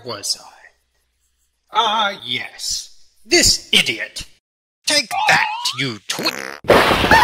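A young man speaks with animation in a cartoon voice.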